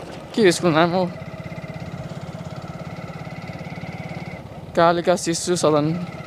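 A motorcycle engine putters steadily nearby.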